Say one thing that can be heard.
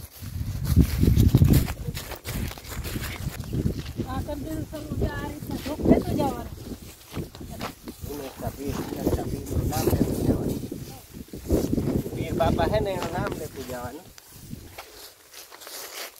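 Footsteps swish through leafy crops.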